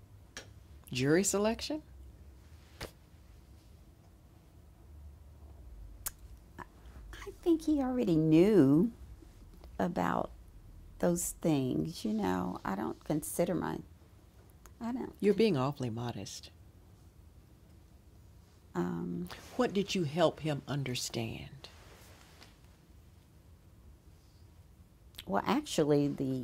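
A middle-aged woman speaks calmly and thoughtfully into a close microphone, pausing between phrases.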